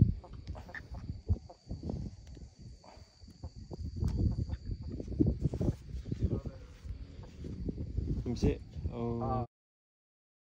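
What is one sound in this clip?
Clothing rubs and bumps close against the microphone.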